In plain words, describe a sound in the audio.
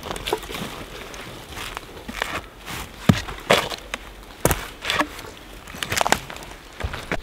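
Dry branches crackle and snap as they are gathered.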